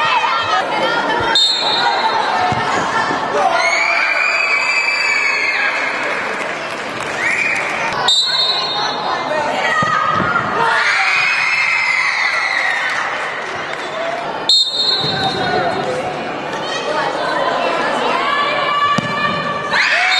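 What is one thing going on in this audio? A ball is kicked hard.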